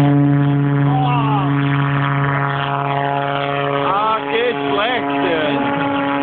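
A model jet engine's whine rises and falls in pitch as the plane flies away overhead.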